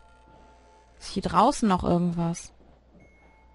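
A young woman speaks loudly and with animation into a close microphone.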